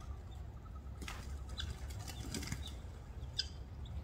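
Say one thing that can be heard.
A bird flaps its wings briefly.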